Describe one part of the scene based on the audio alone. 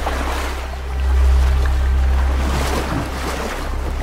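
Waves splash and churn in rough water.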